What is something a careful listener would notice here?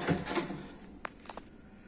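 A door latch clicks as a handle is pressed.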